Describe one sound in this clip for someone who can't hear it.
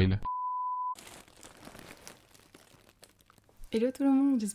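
Plastic mailer bags crinkle and rustle.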